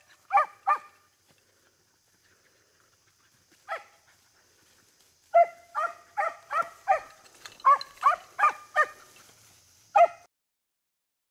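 Beagles bark and bay in short, loud bursts outdoors.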